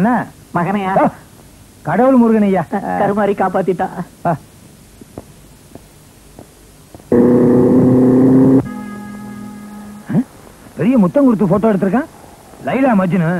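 A man laughs loudly and talks with animation.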